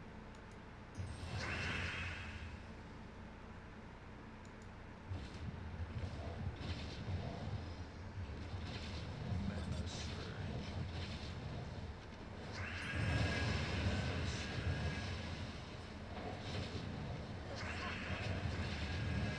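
Game chimes and blasts ring out as gems are matched.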